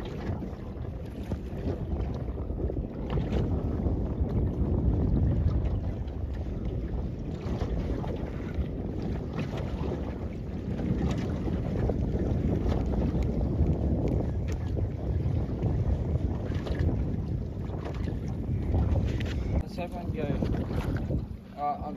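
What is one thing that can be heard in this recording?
Waves slap and wash against a boat's hull.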